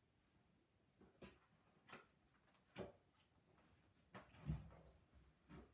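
A book thumps and rustles as it is closed and set down.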